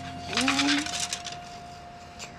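Bamboo slips clatter as a scroll is unrolled.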